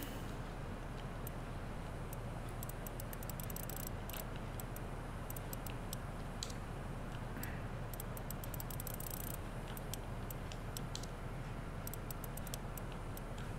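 A combination dial clicks softly as it turns.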